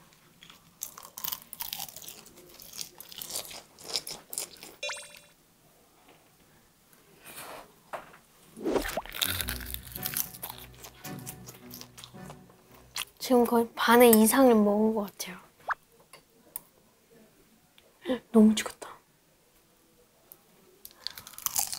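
A young boy chews food with wet smacking sounds.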